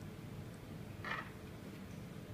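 A small metal piece clicks into a metal base.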